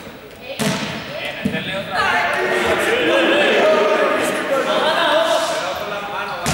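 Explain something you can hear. A group of young people talk and shout with animation, echoing in a large hall.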